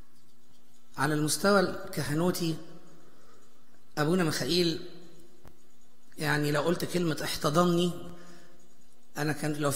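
A man speaks through a microphone in a resonant hall, pausing between phrases.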